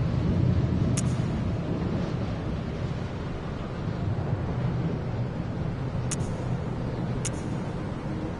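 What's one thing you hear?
A game menu gives short clicks as the selection moves between items.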